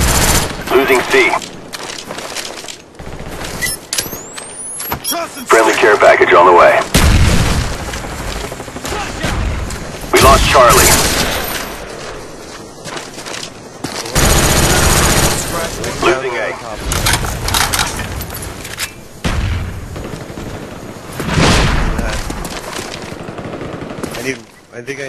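Rifle gunfire rattles in quick bursts.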